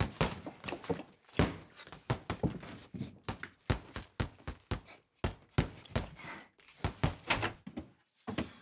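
Boxing gloves thump rapidly against a punching bag.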